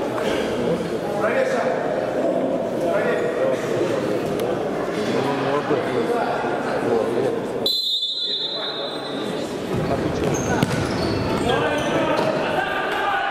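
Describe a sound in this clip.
Players call out to each other in a large echoing indoor hall.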